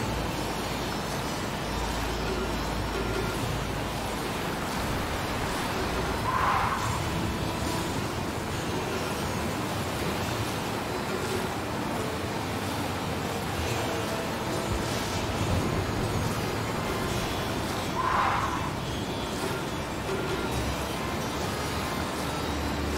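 A hovering motorbike hums steadily as it glides along.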